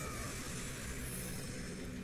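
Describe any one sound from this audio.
A burst of energy crackles and flashes.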